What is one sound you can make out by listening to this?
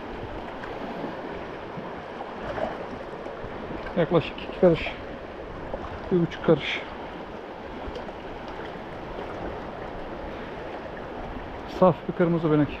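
A fast river rushes and splashes over rocks nearby.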